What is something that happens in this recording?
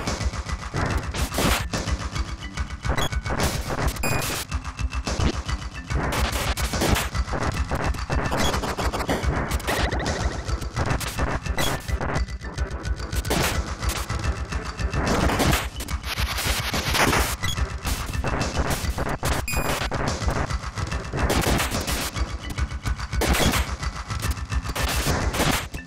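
Weapons strike enemies with sharp hits.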